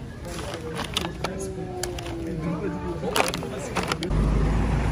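A plastic packet crinkles as it is handled.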